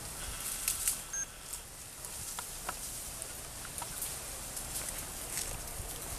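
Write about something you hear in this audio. A monkey scrambles up a tree trunk, rustling branches.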